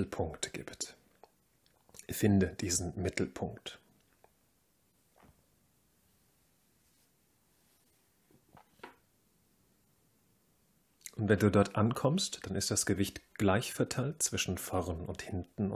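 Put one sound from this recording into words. A man speaks calmly and slowly, close by.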